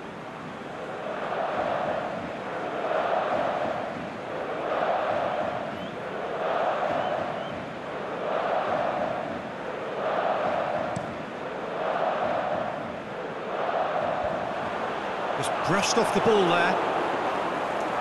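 A large stadium crowd chants in a slow, steady rhythm.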